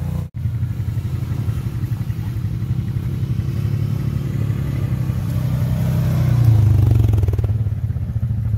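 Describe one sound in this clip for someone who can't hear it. A quad bike engine rumbles up close.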